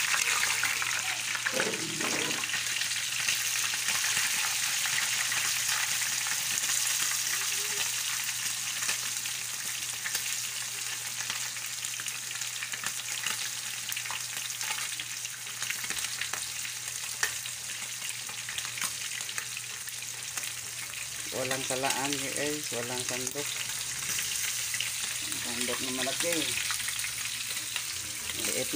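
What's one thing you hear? Hot oil sizzles and crackles steadily as a chicken fries.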